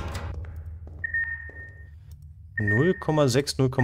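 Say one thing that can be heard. An electronic device beeps with a steady high tone.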